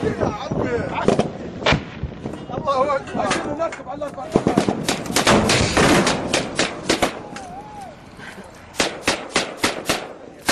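Rifles fire rapid bursts of sharp gunshots close by.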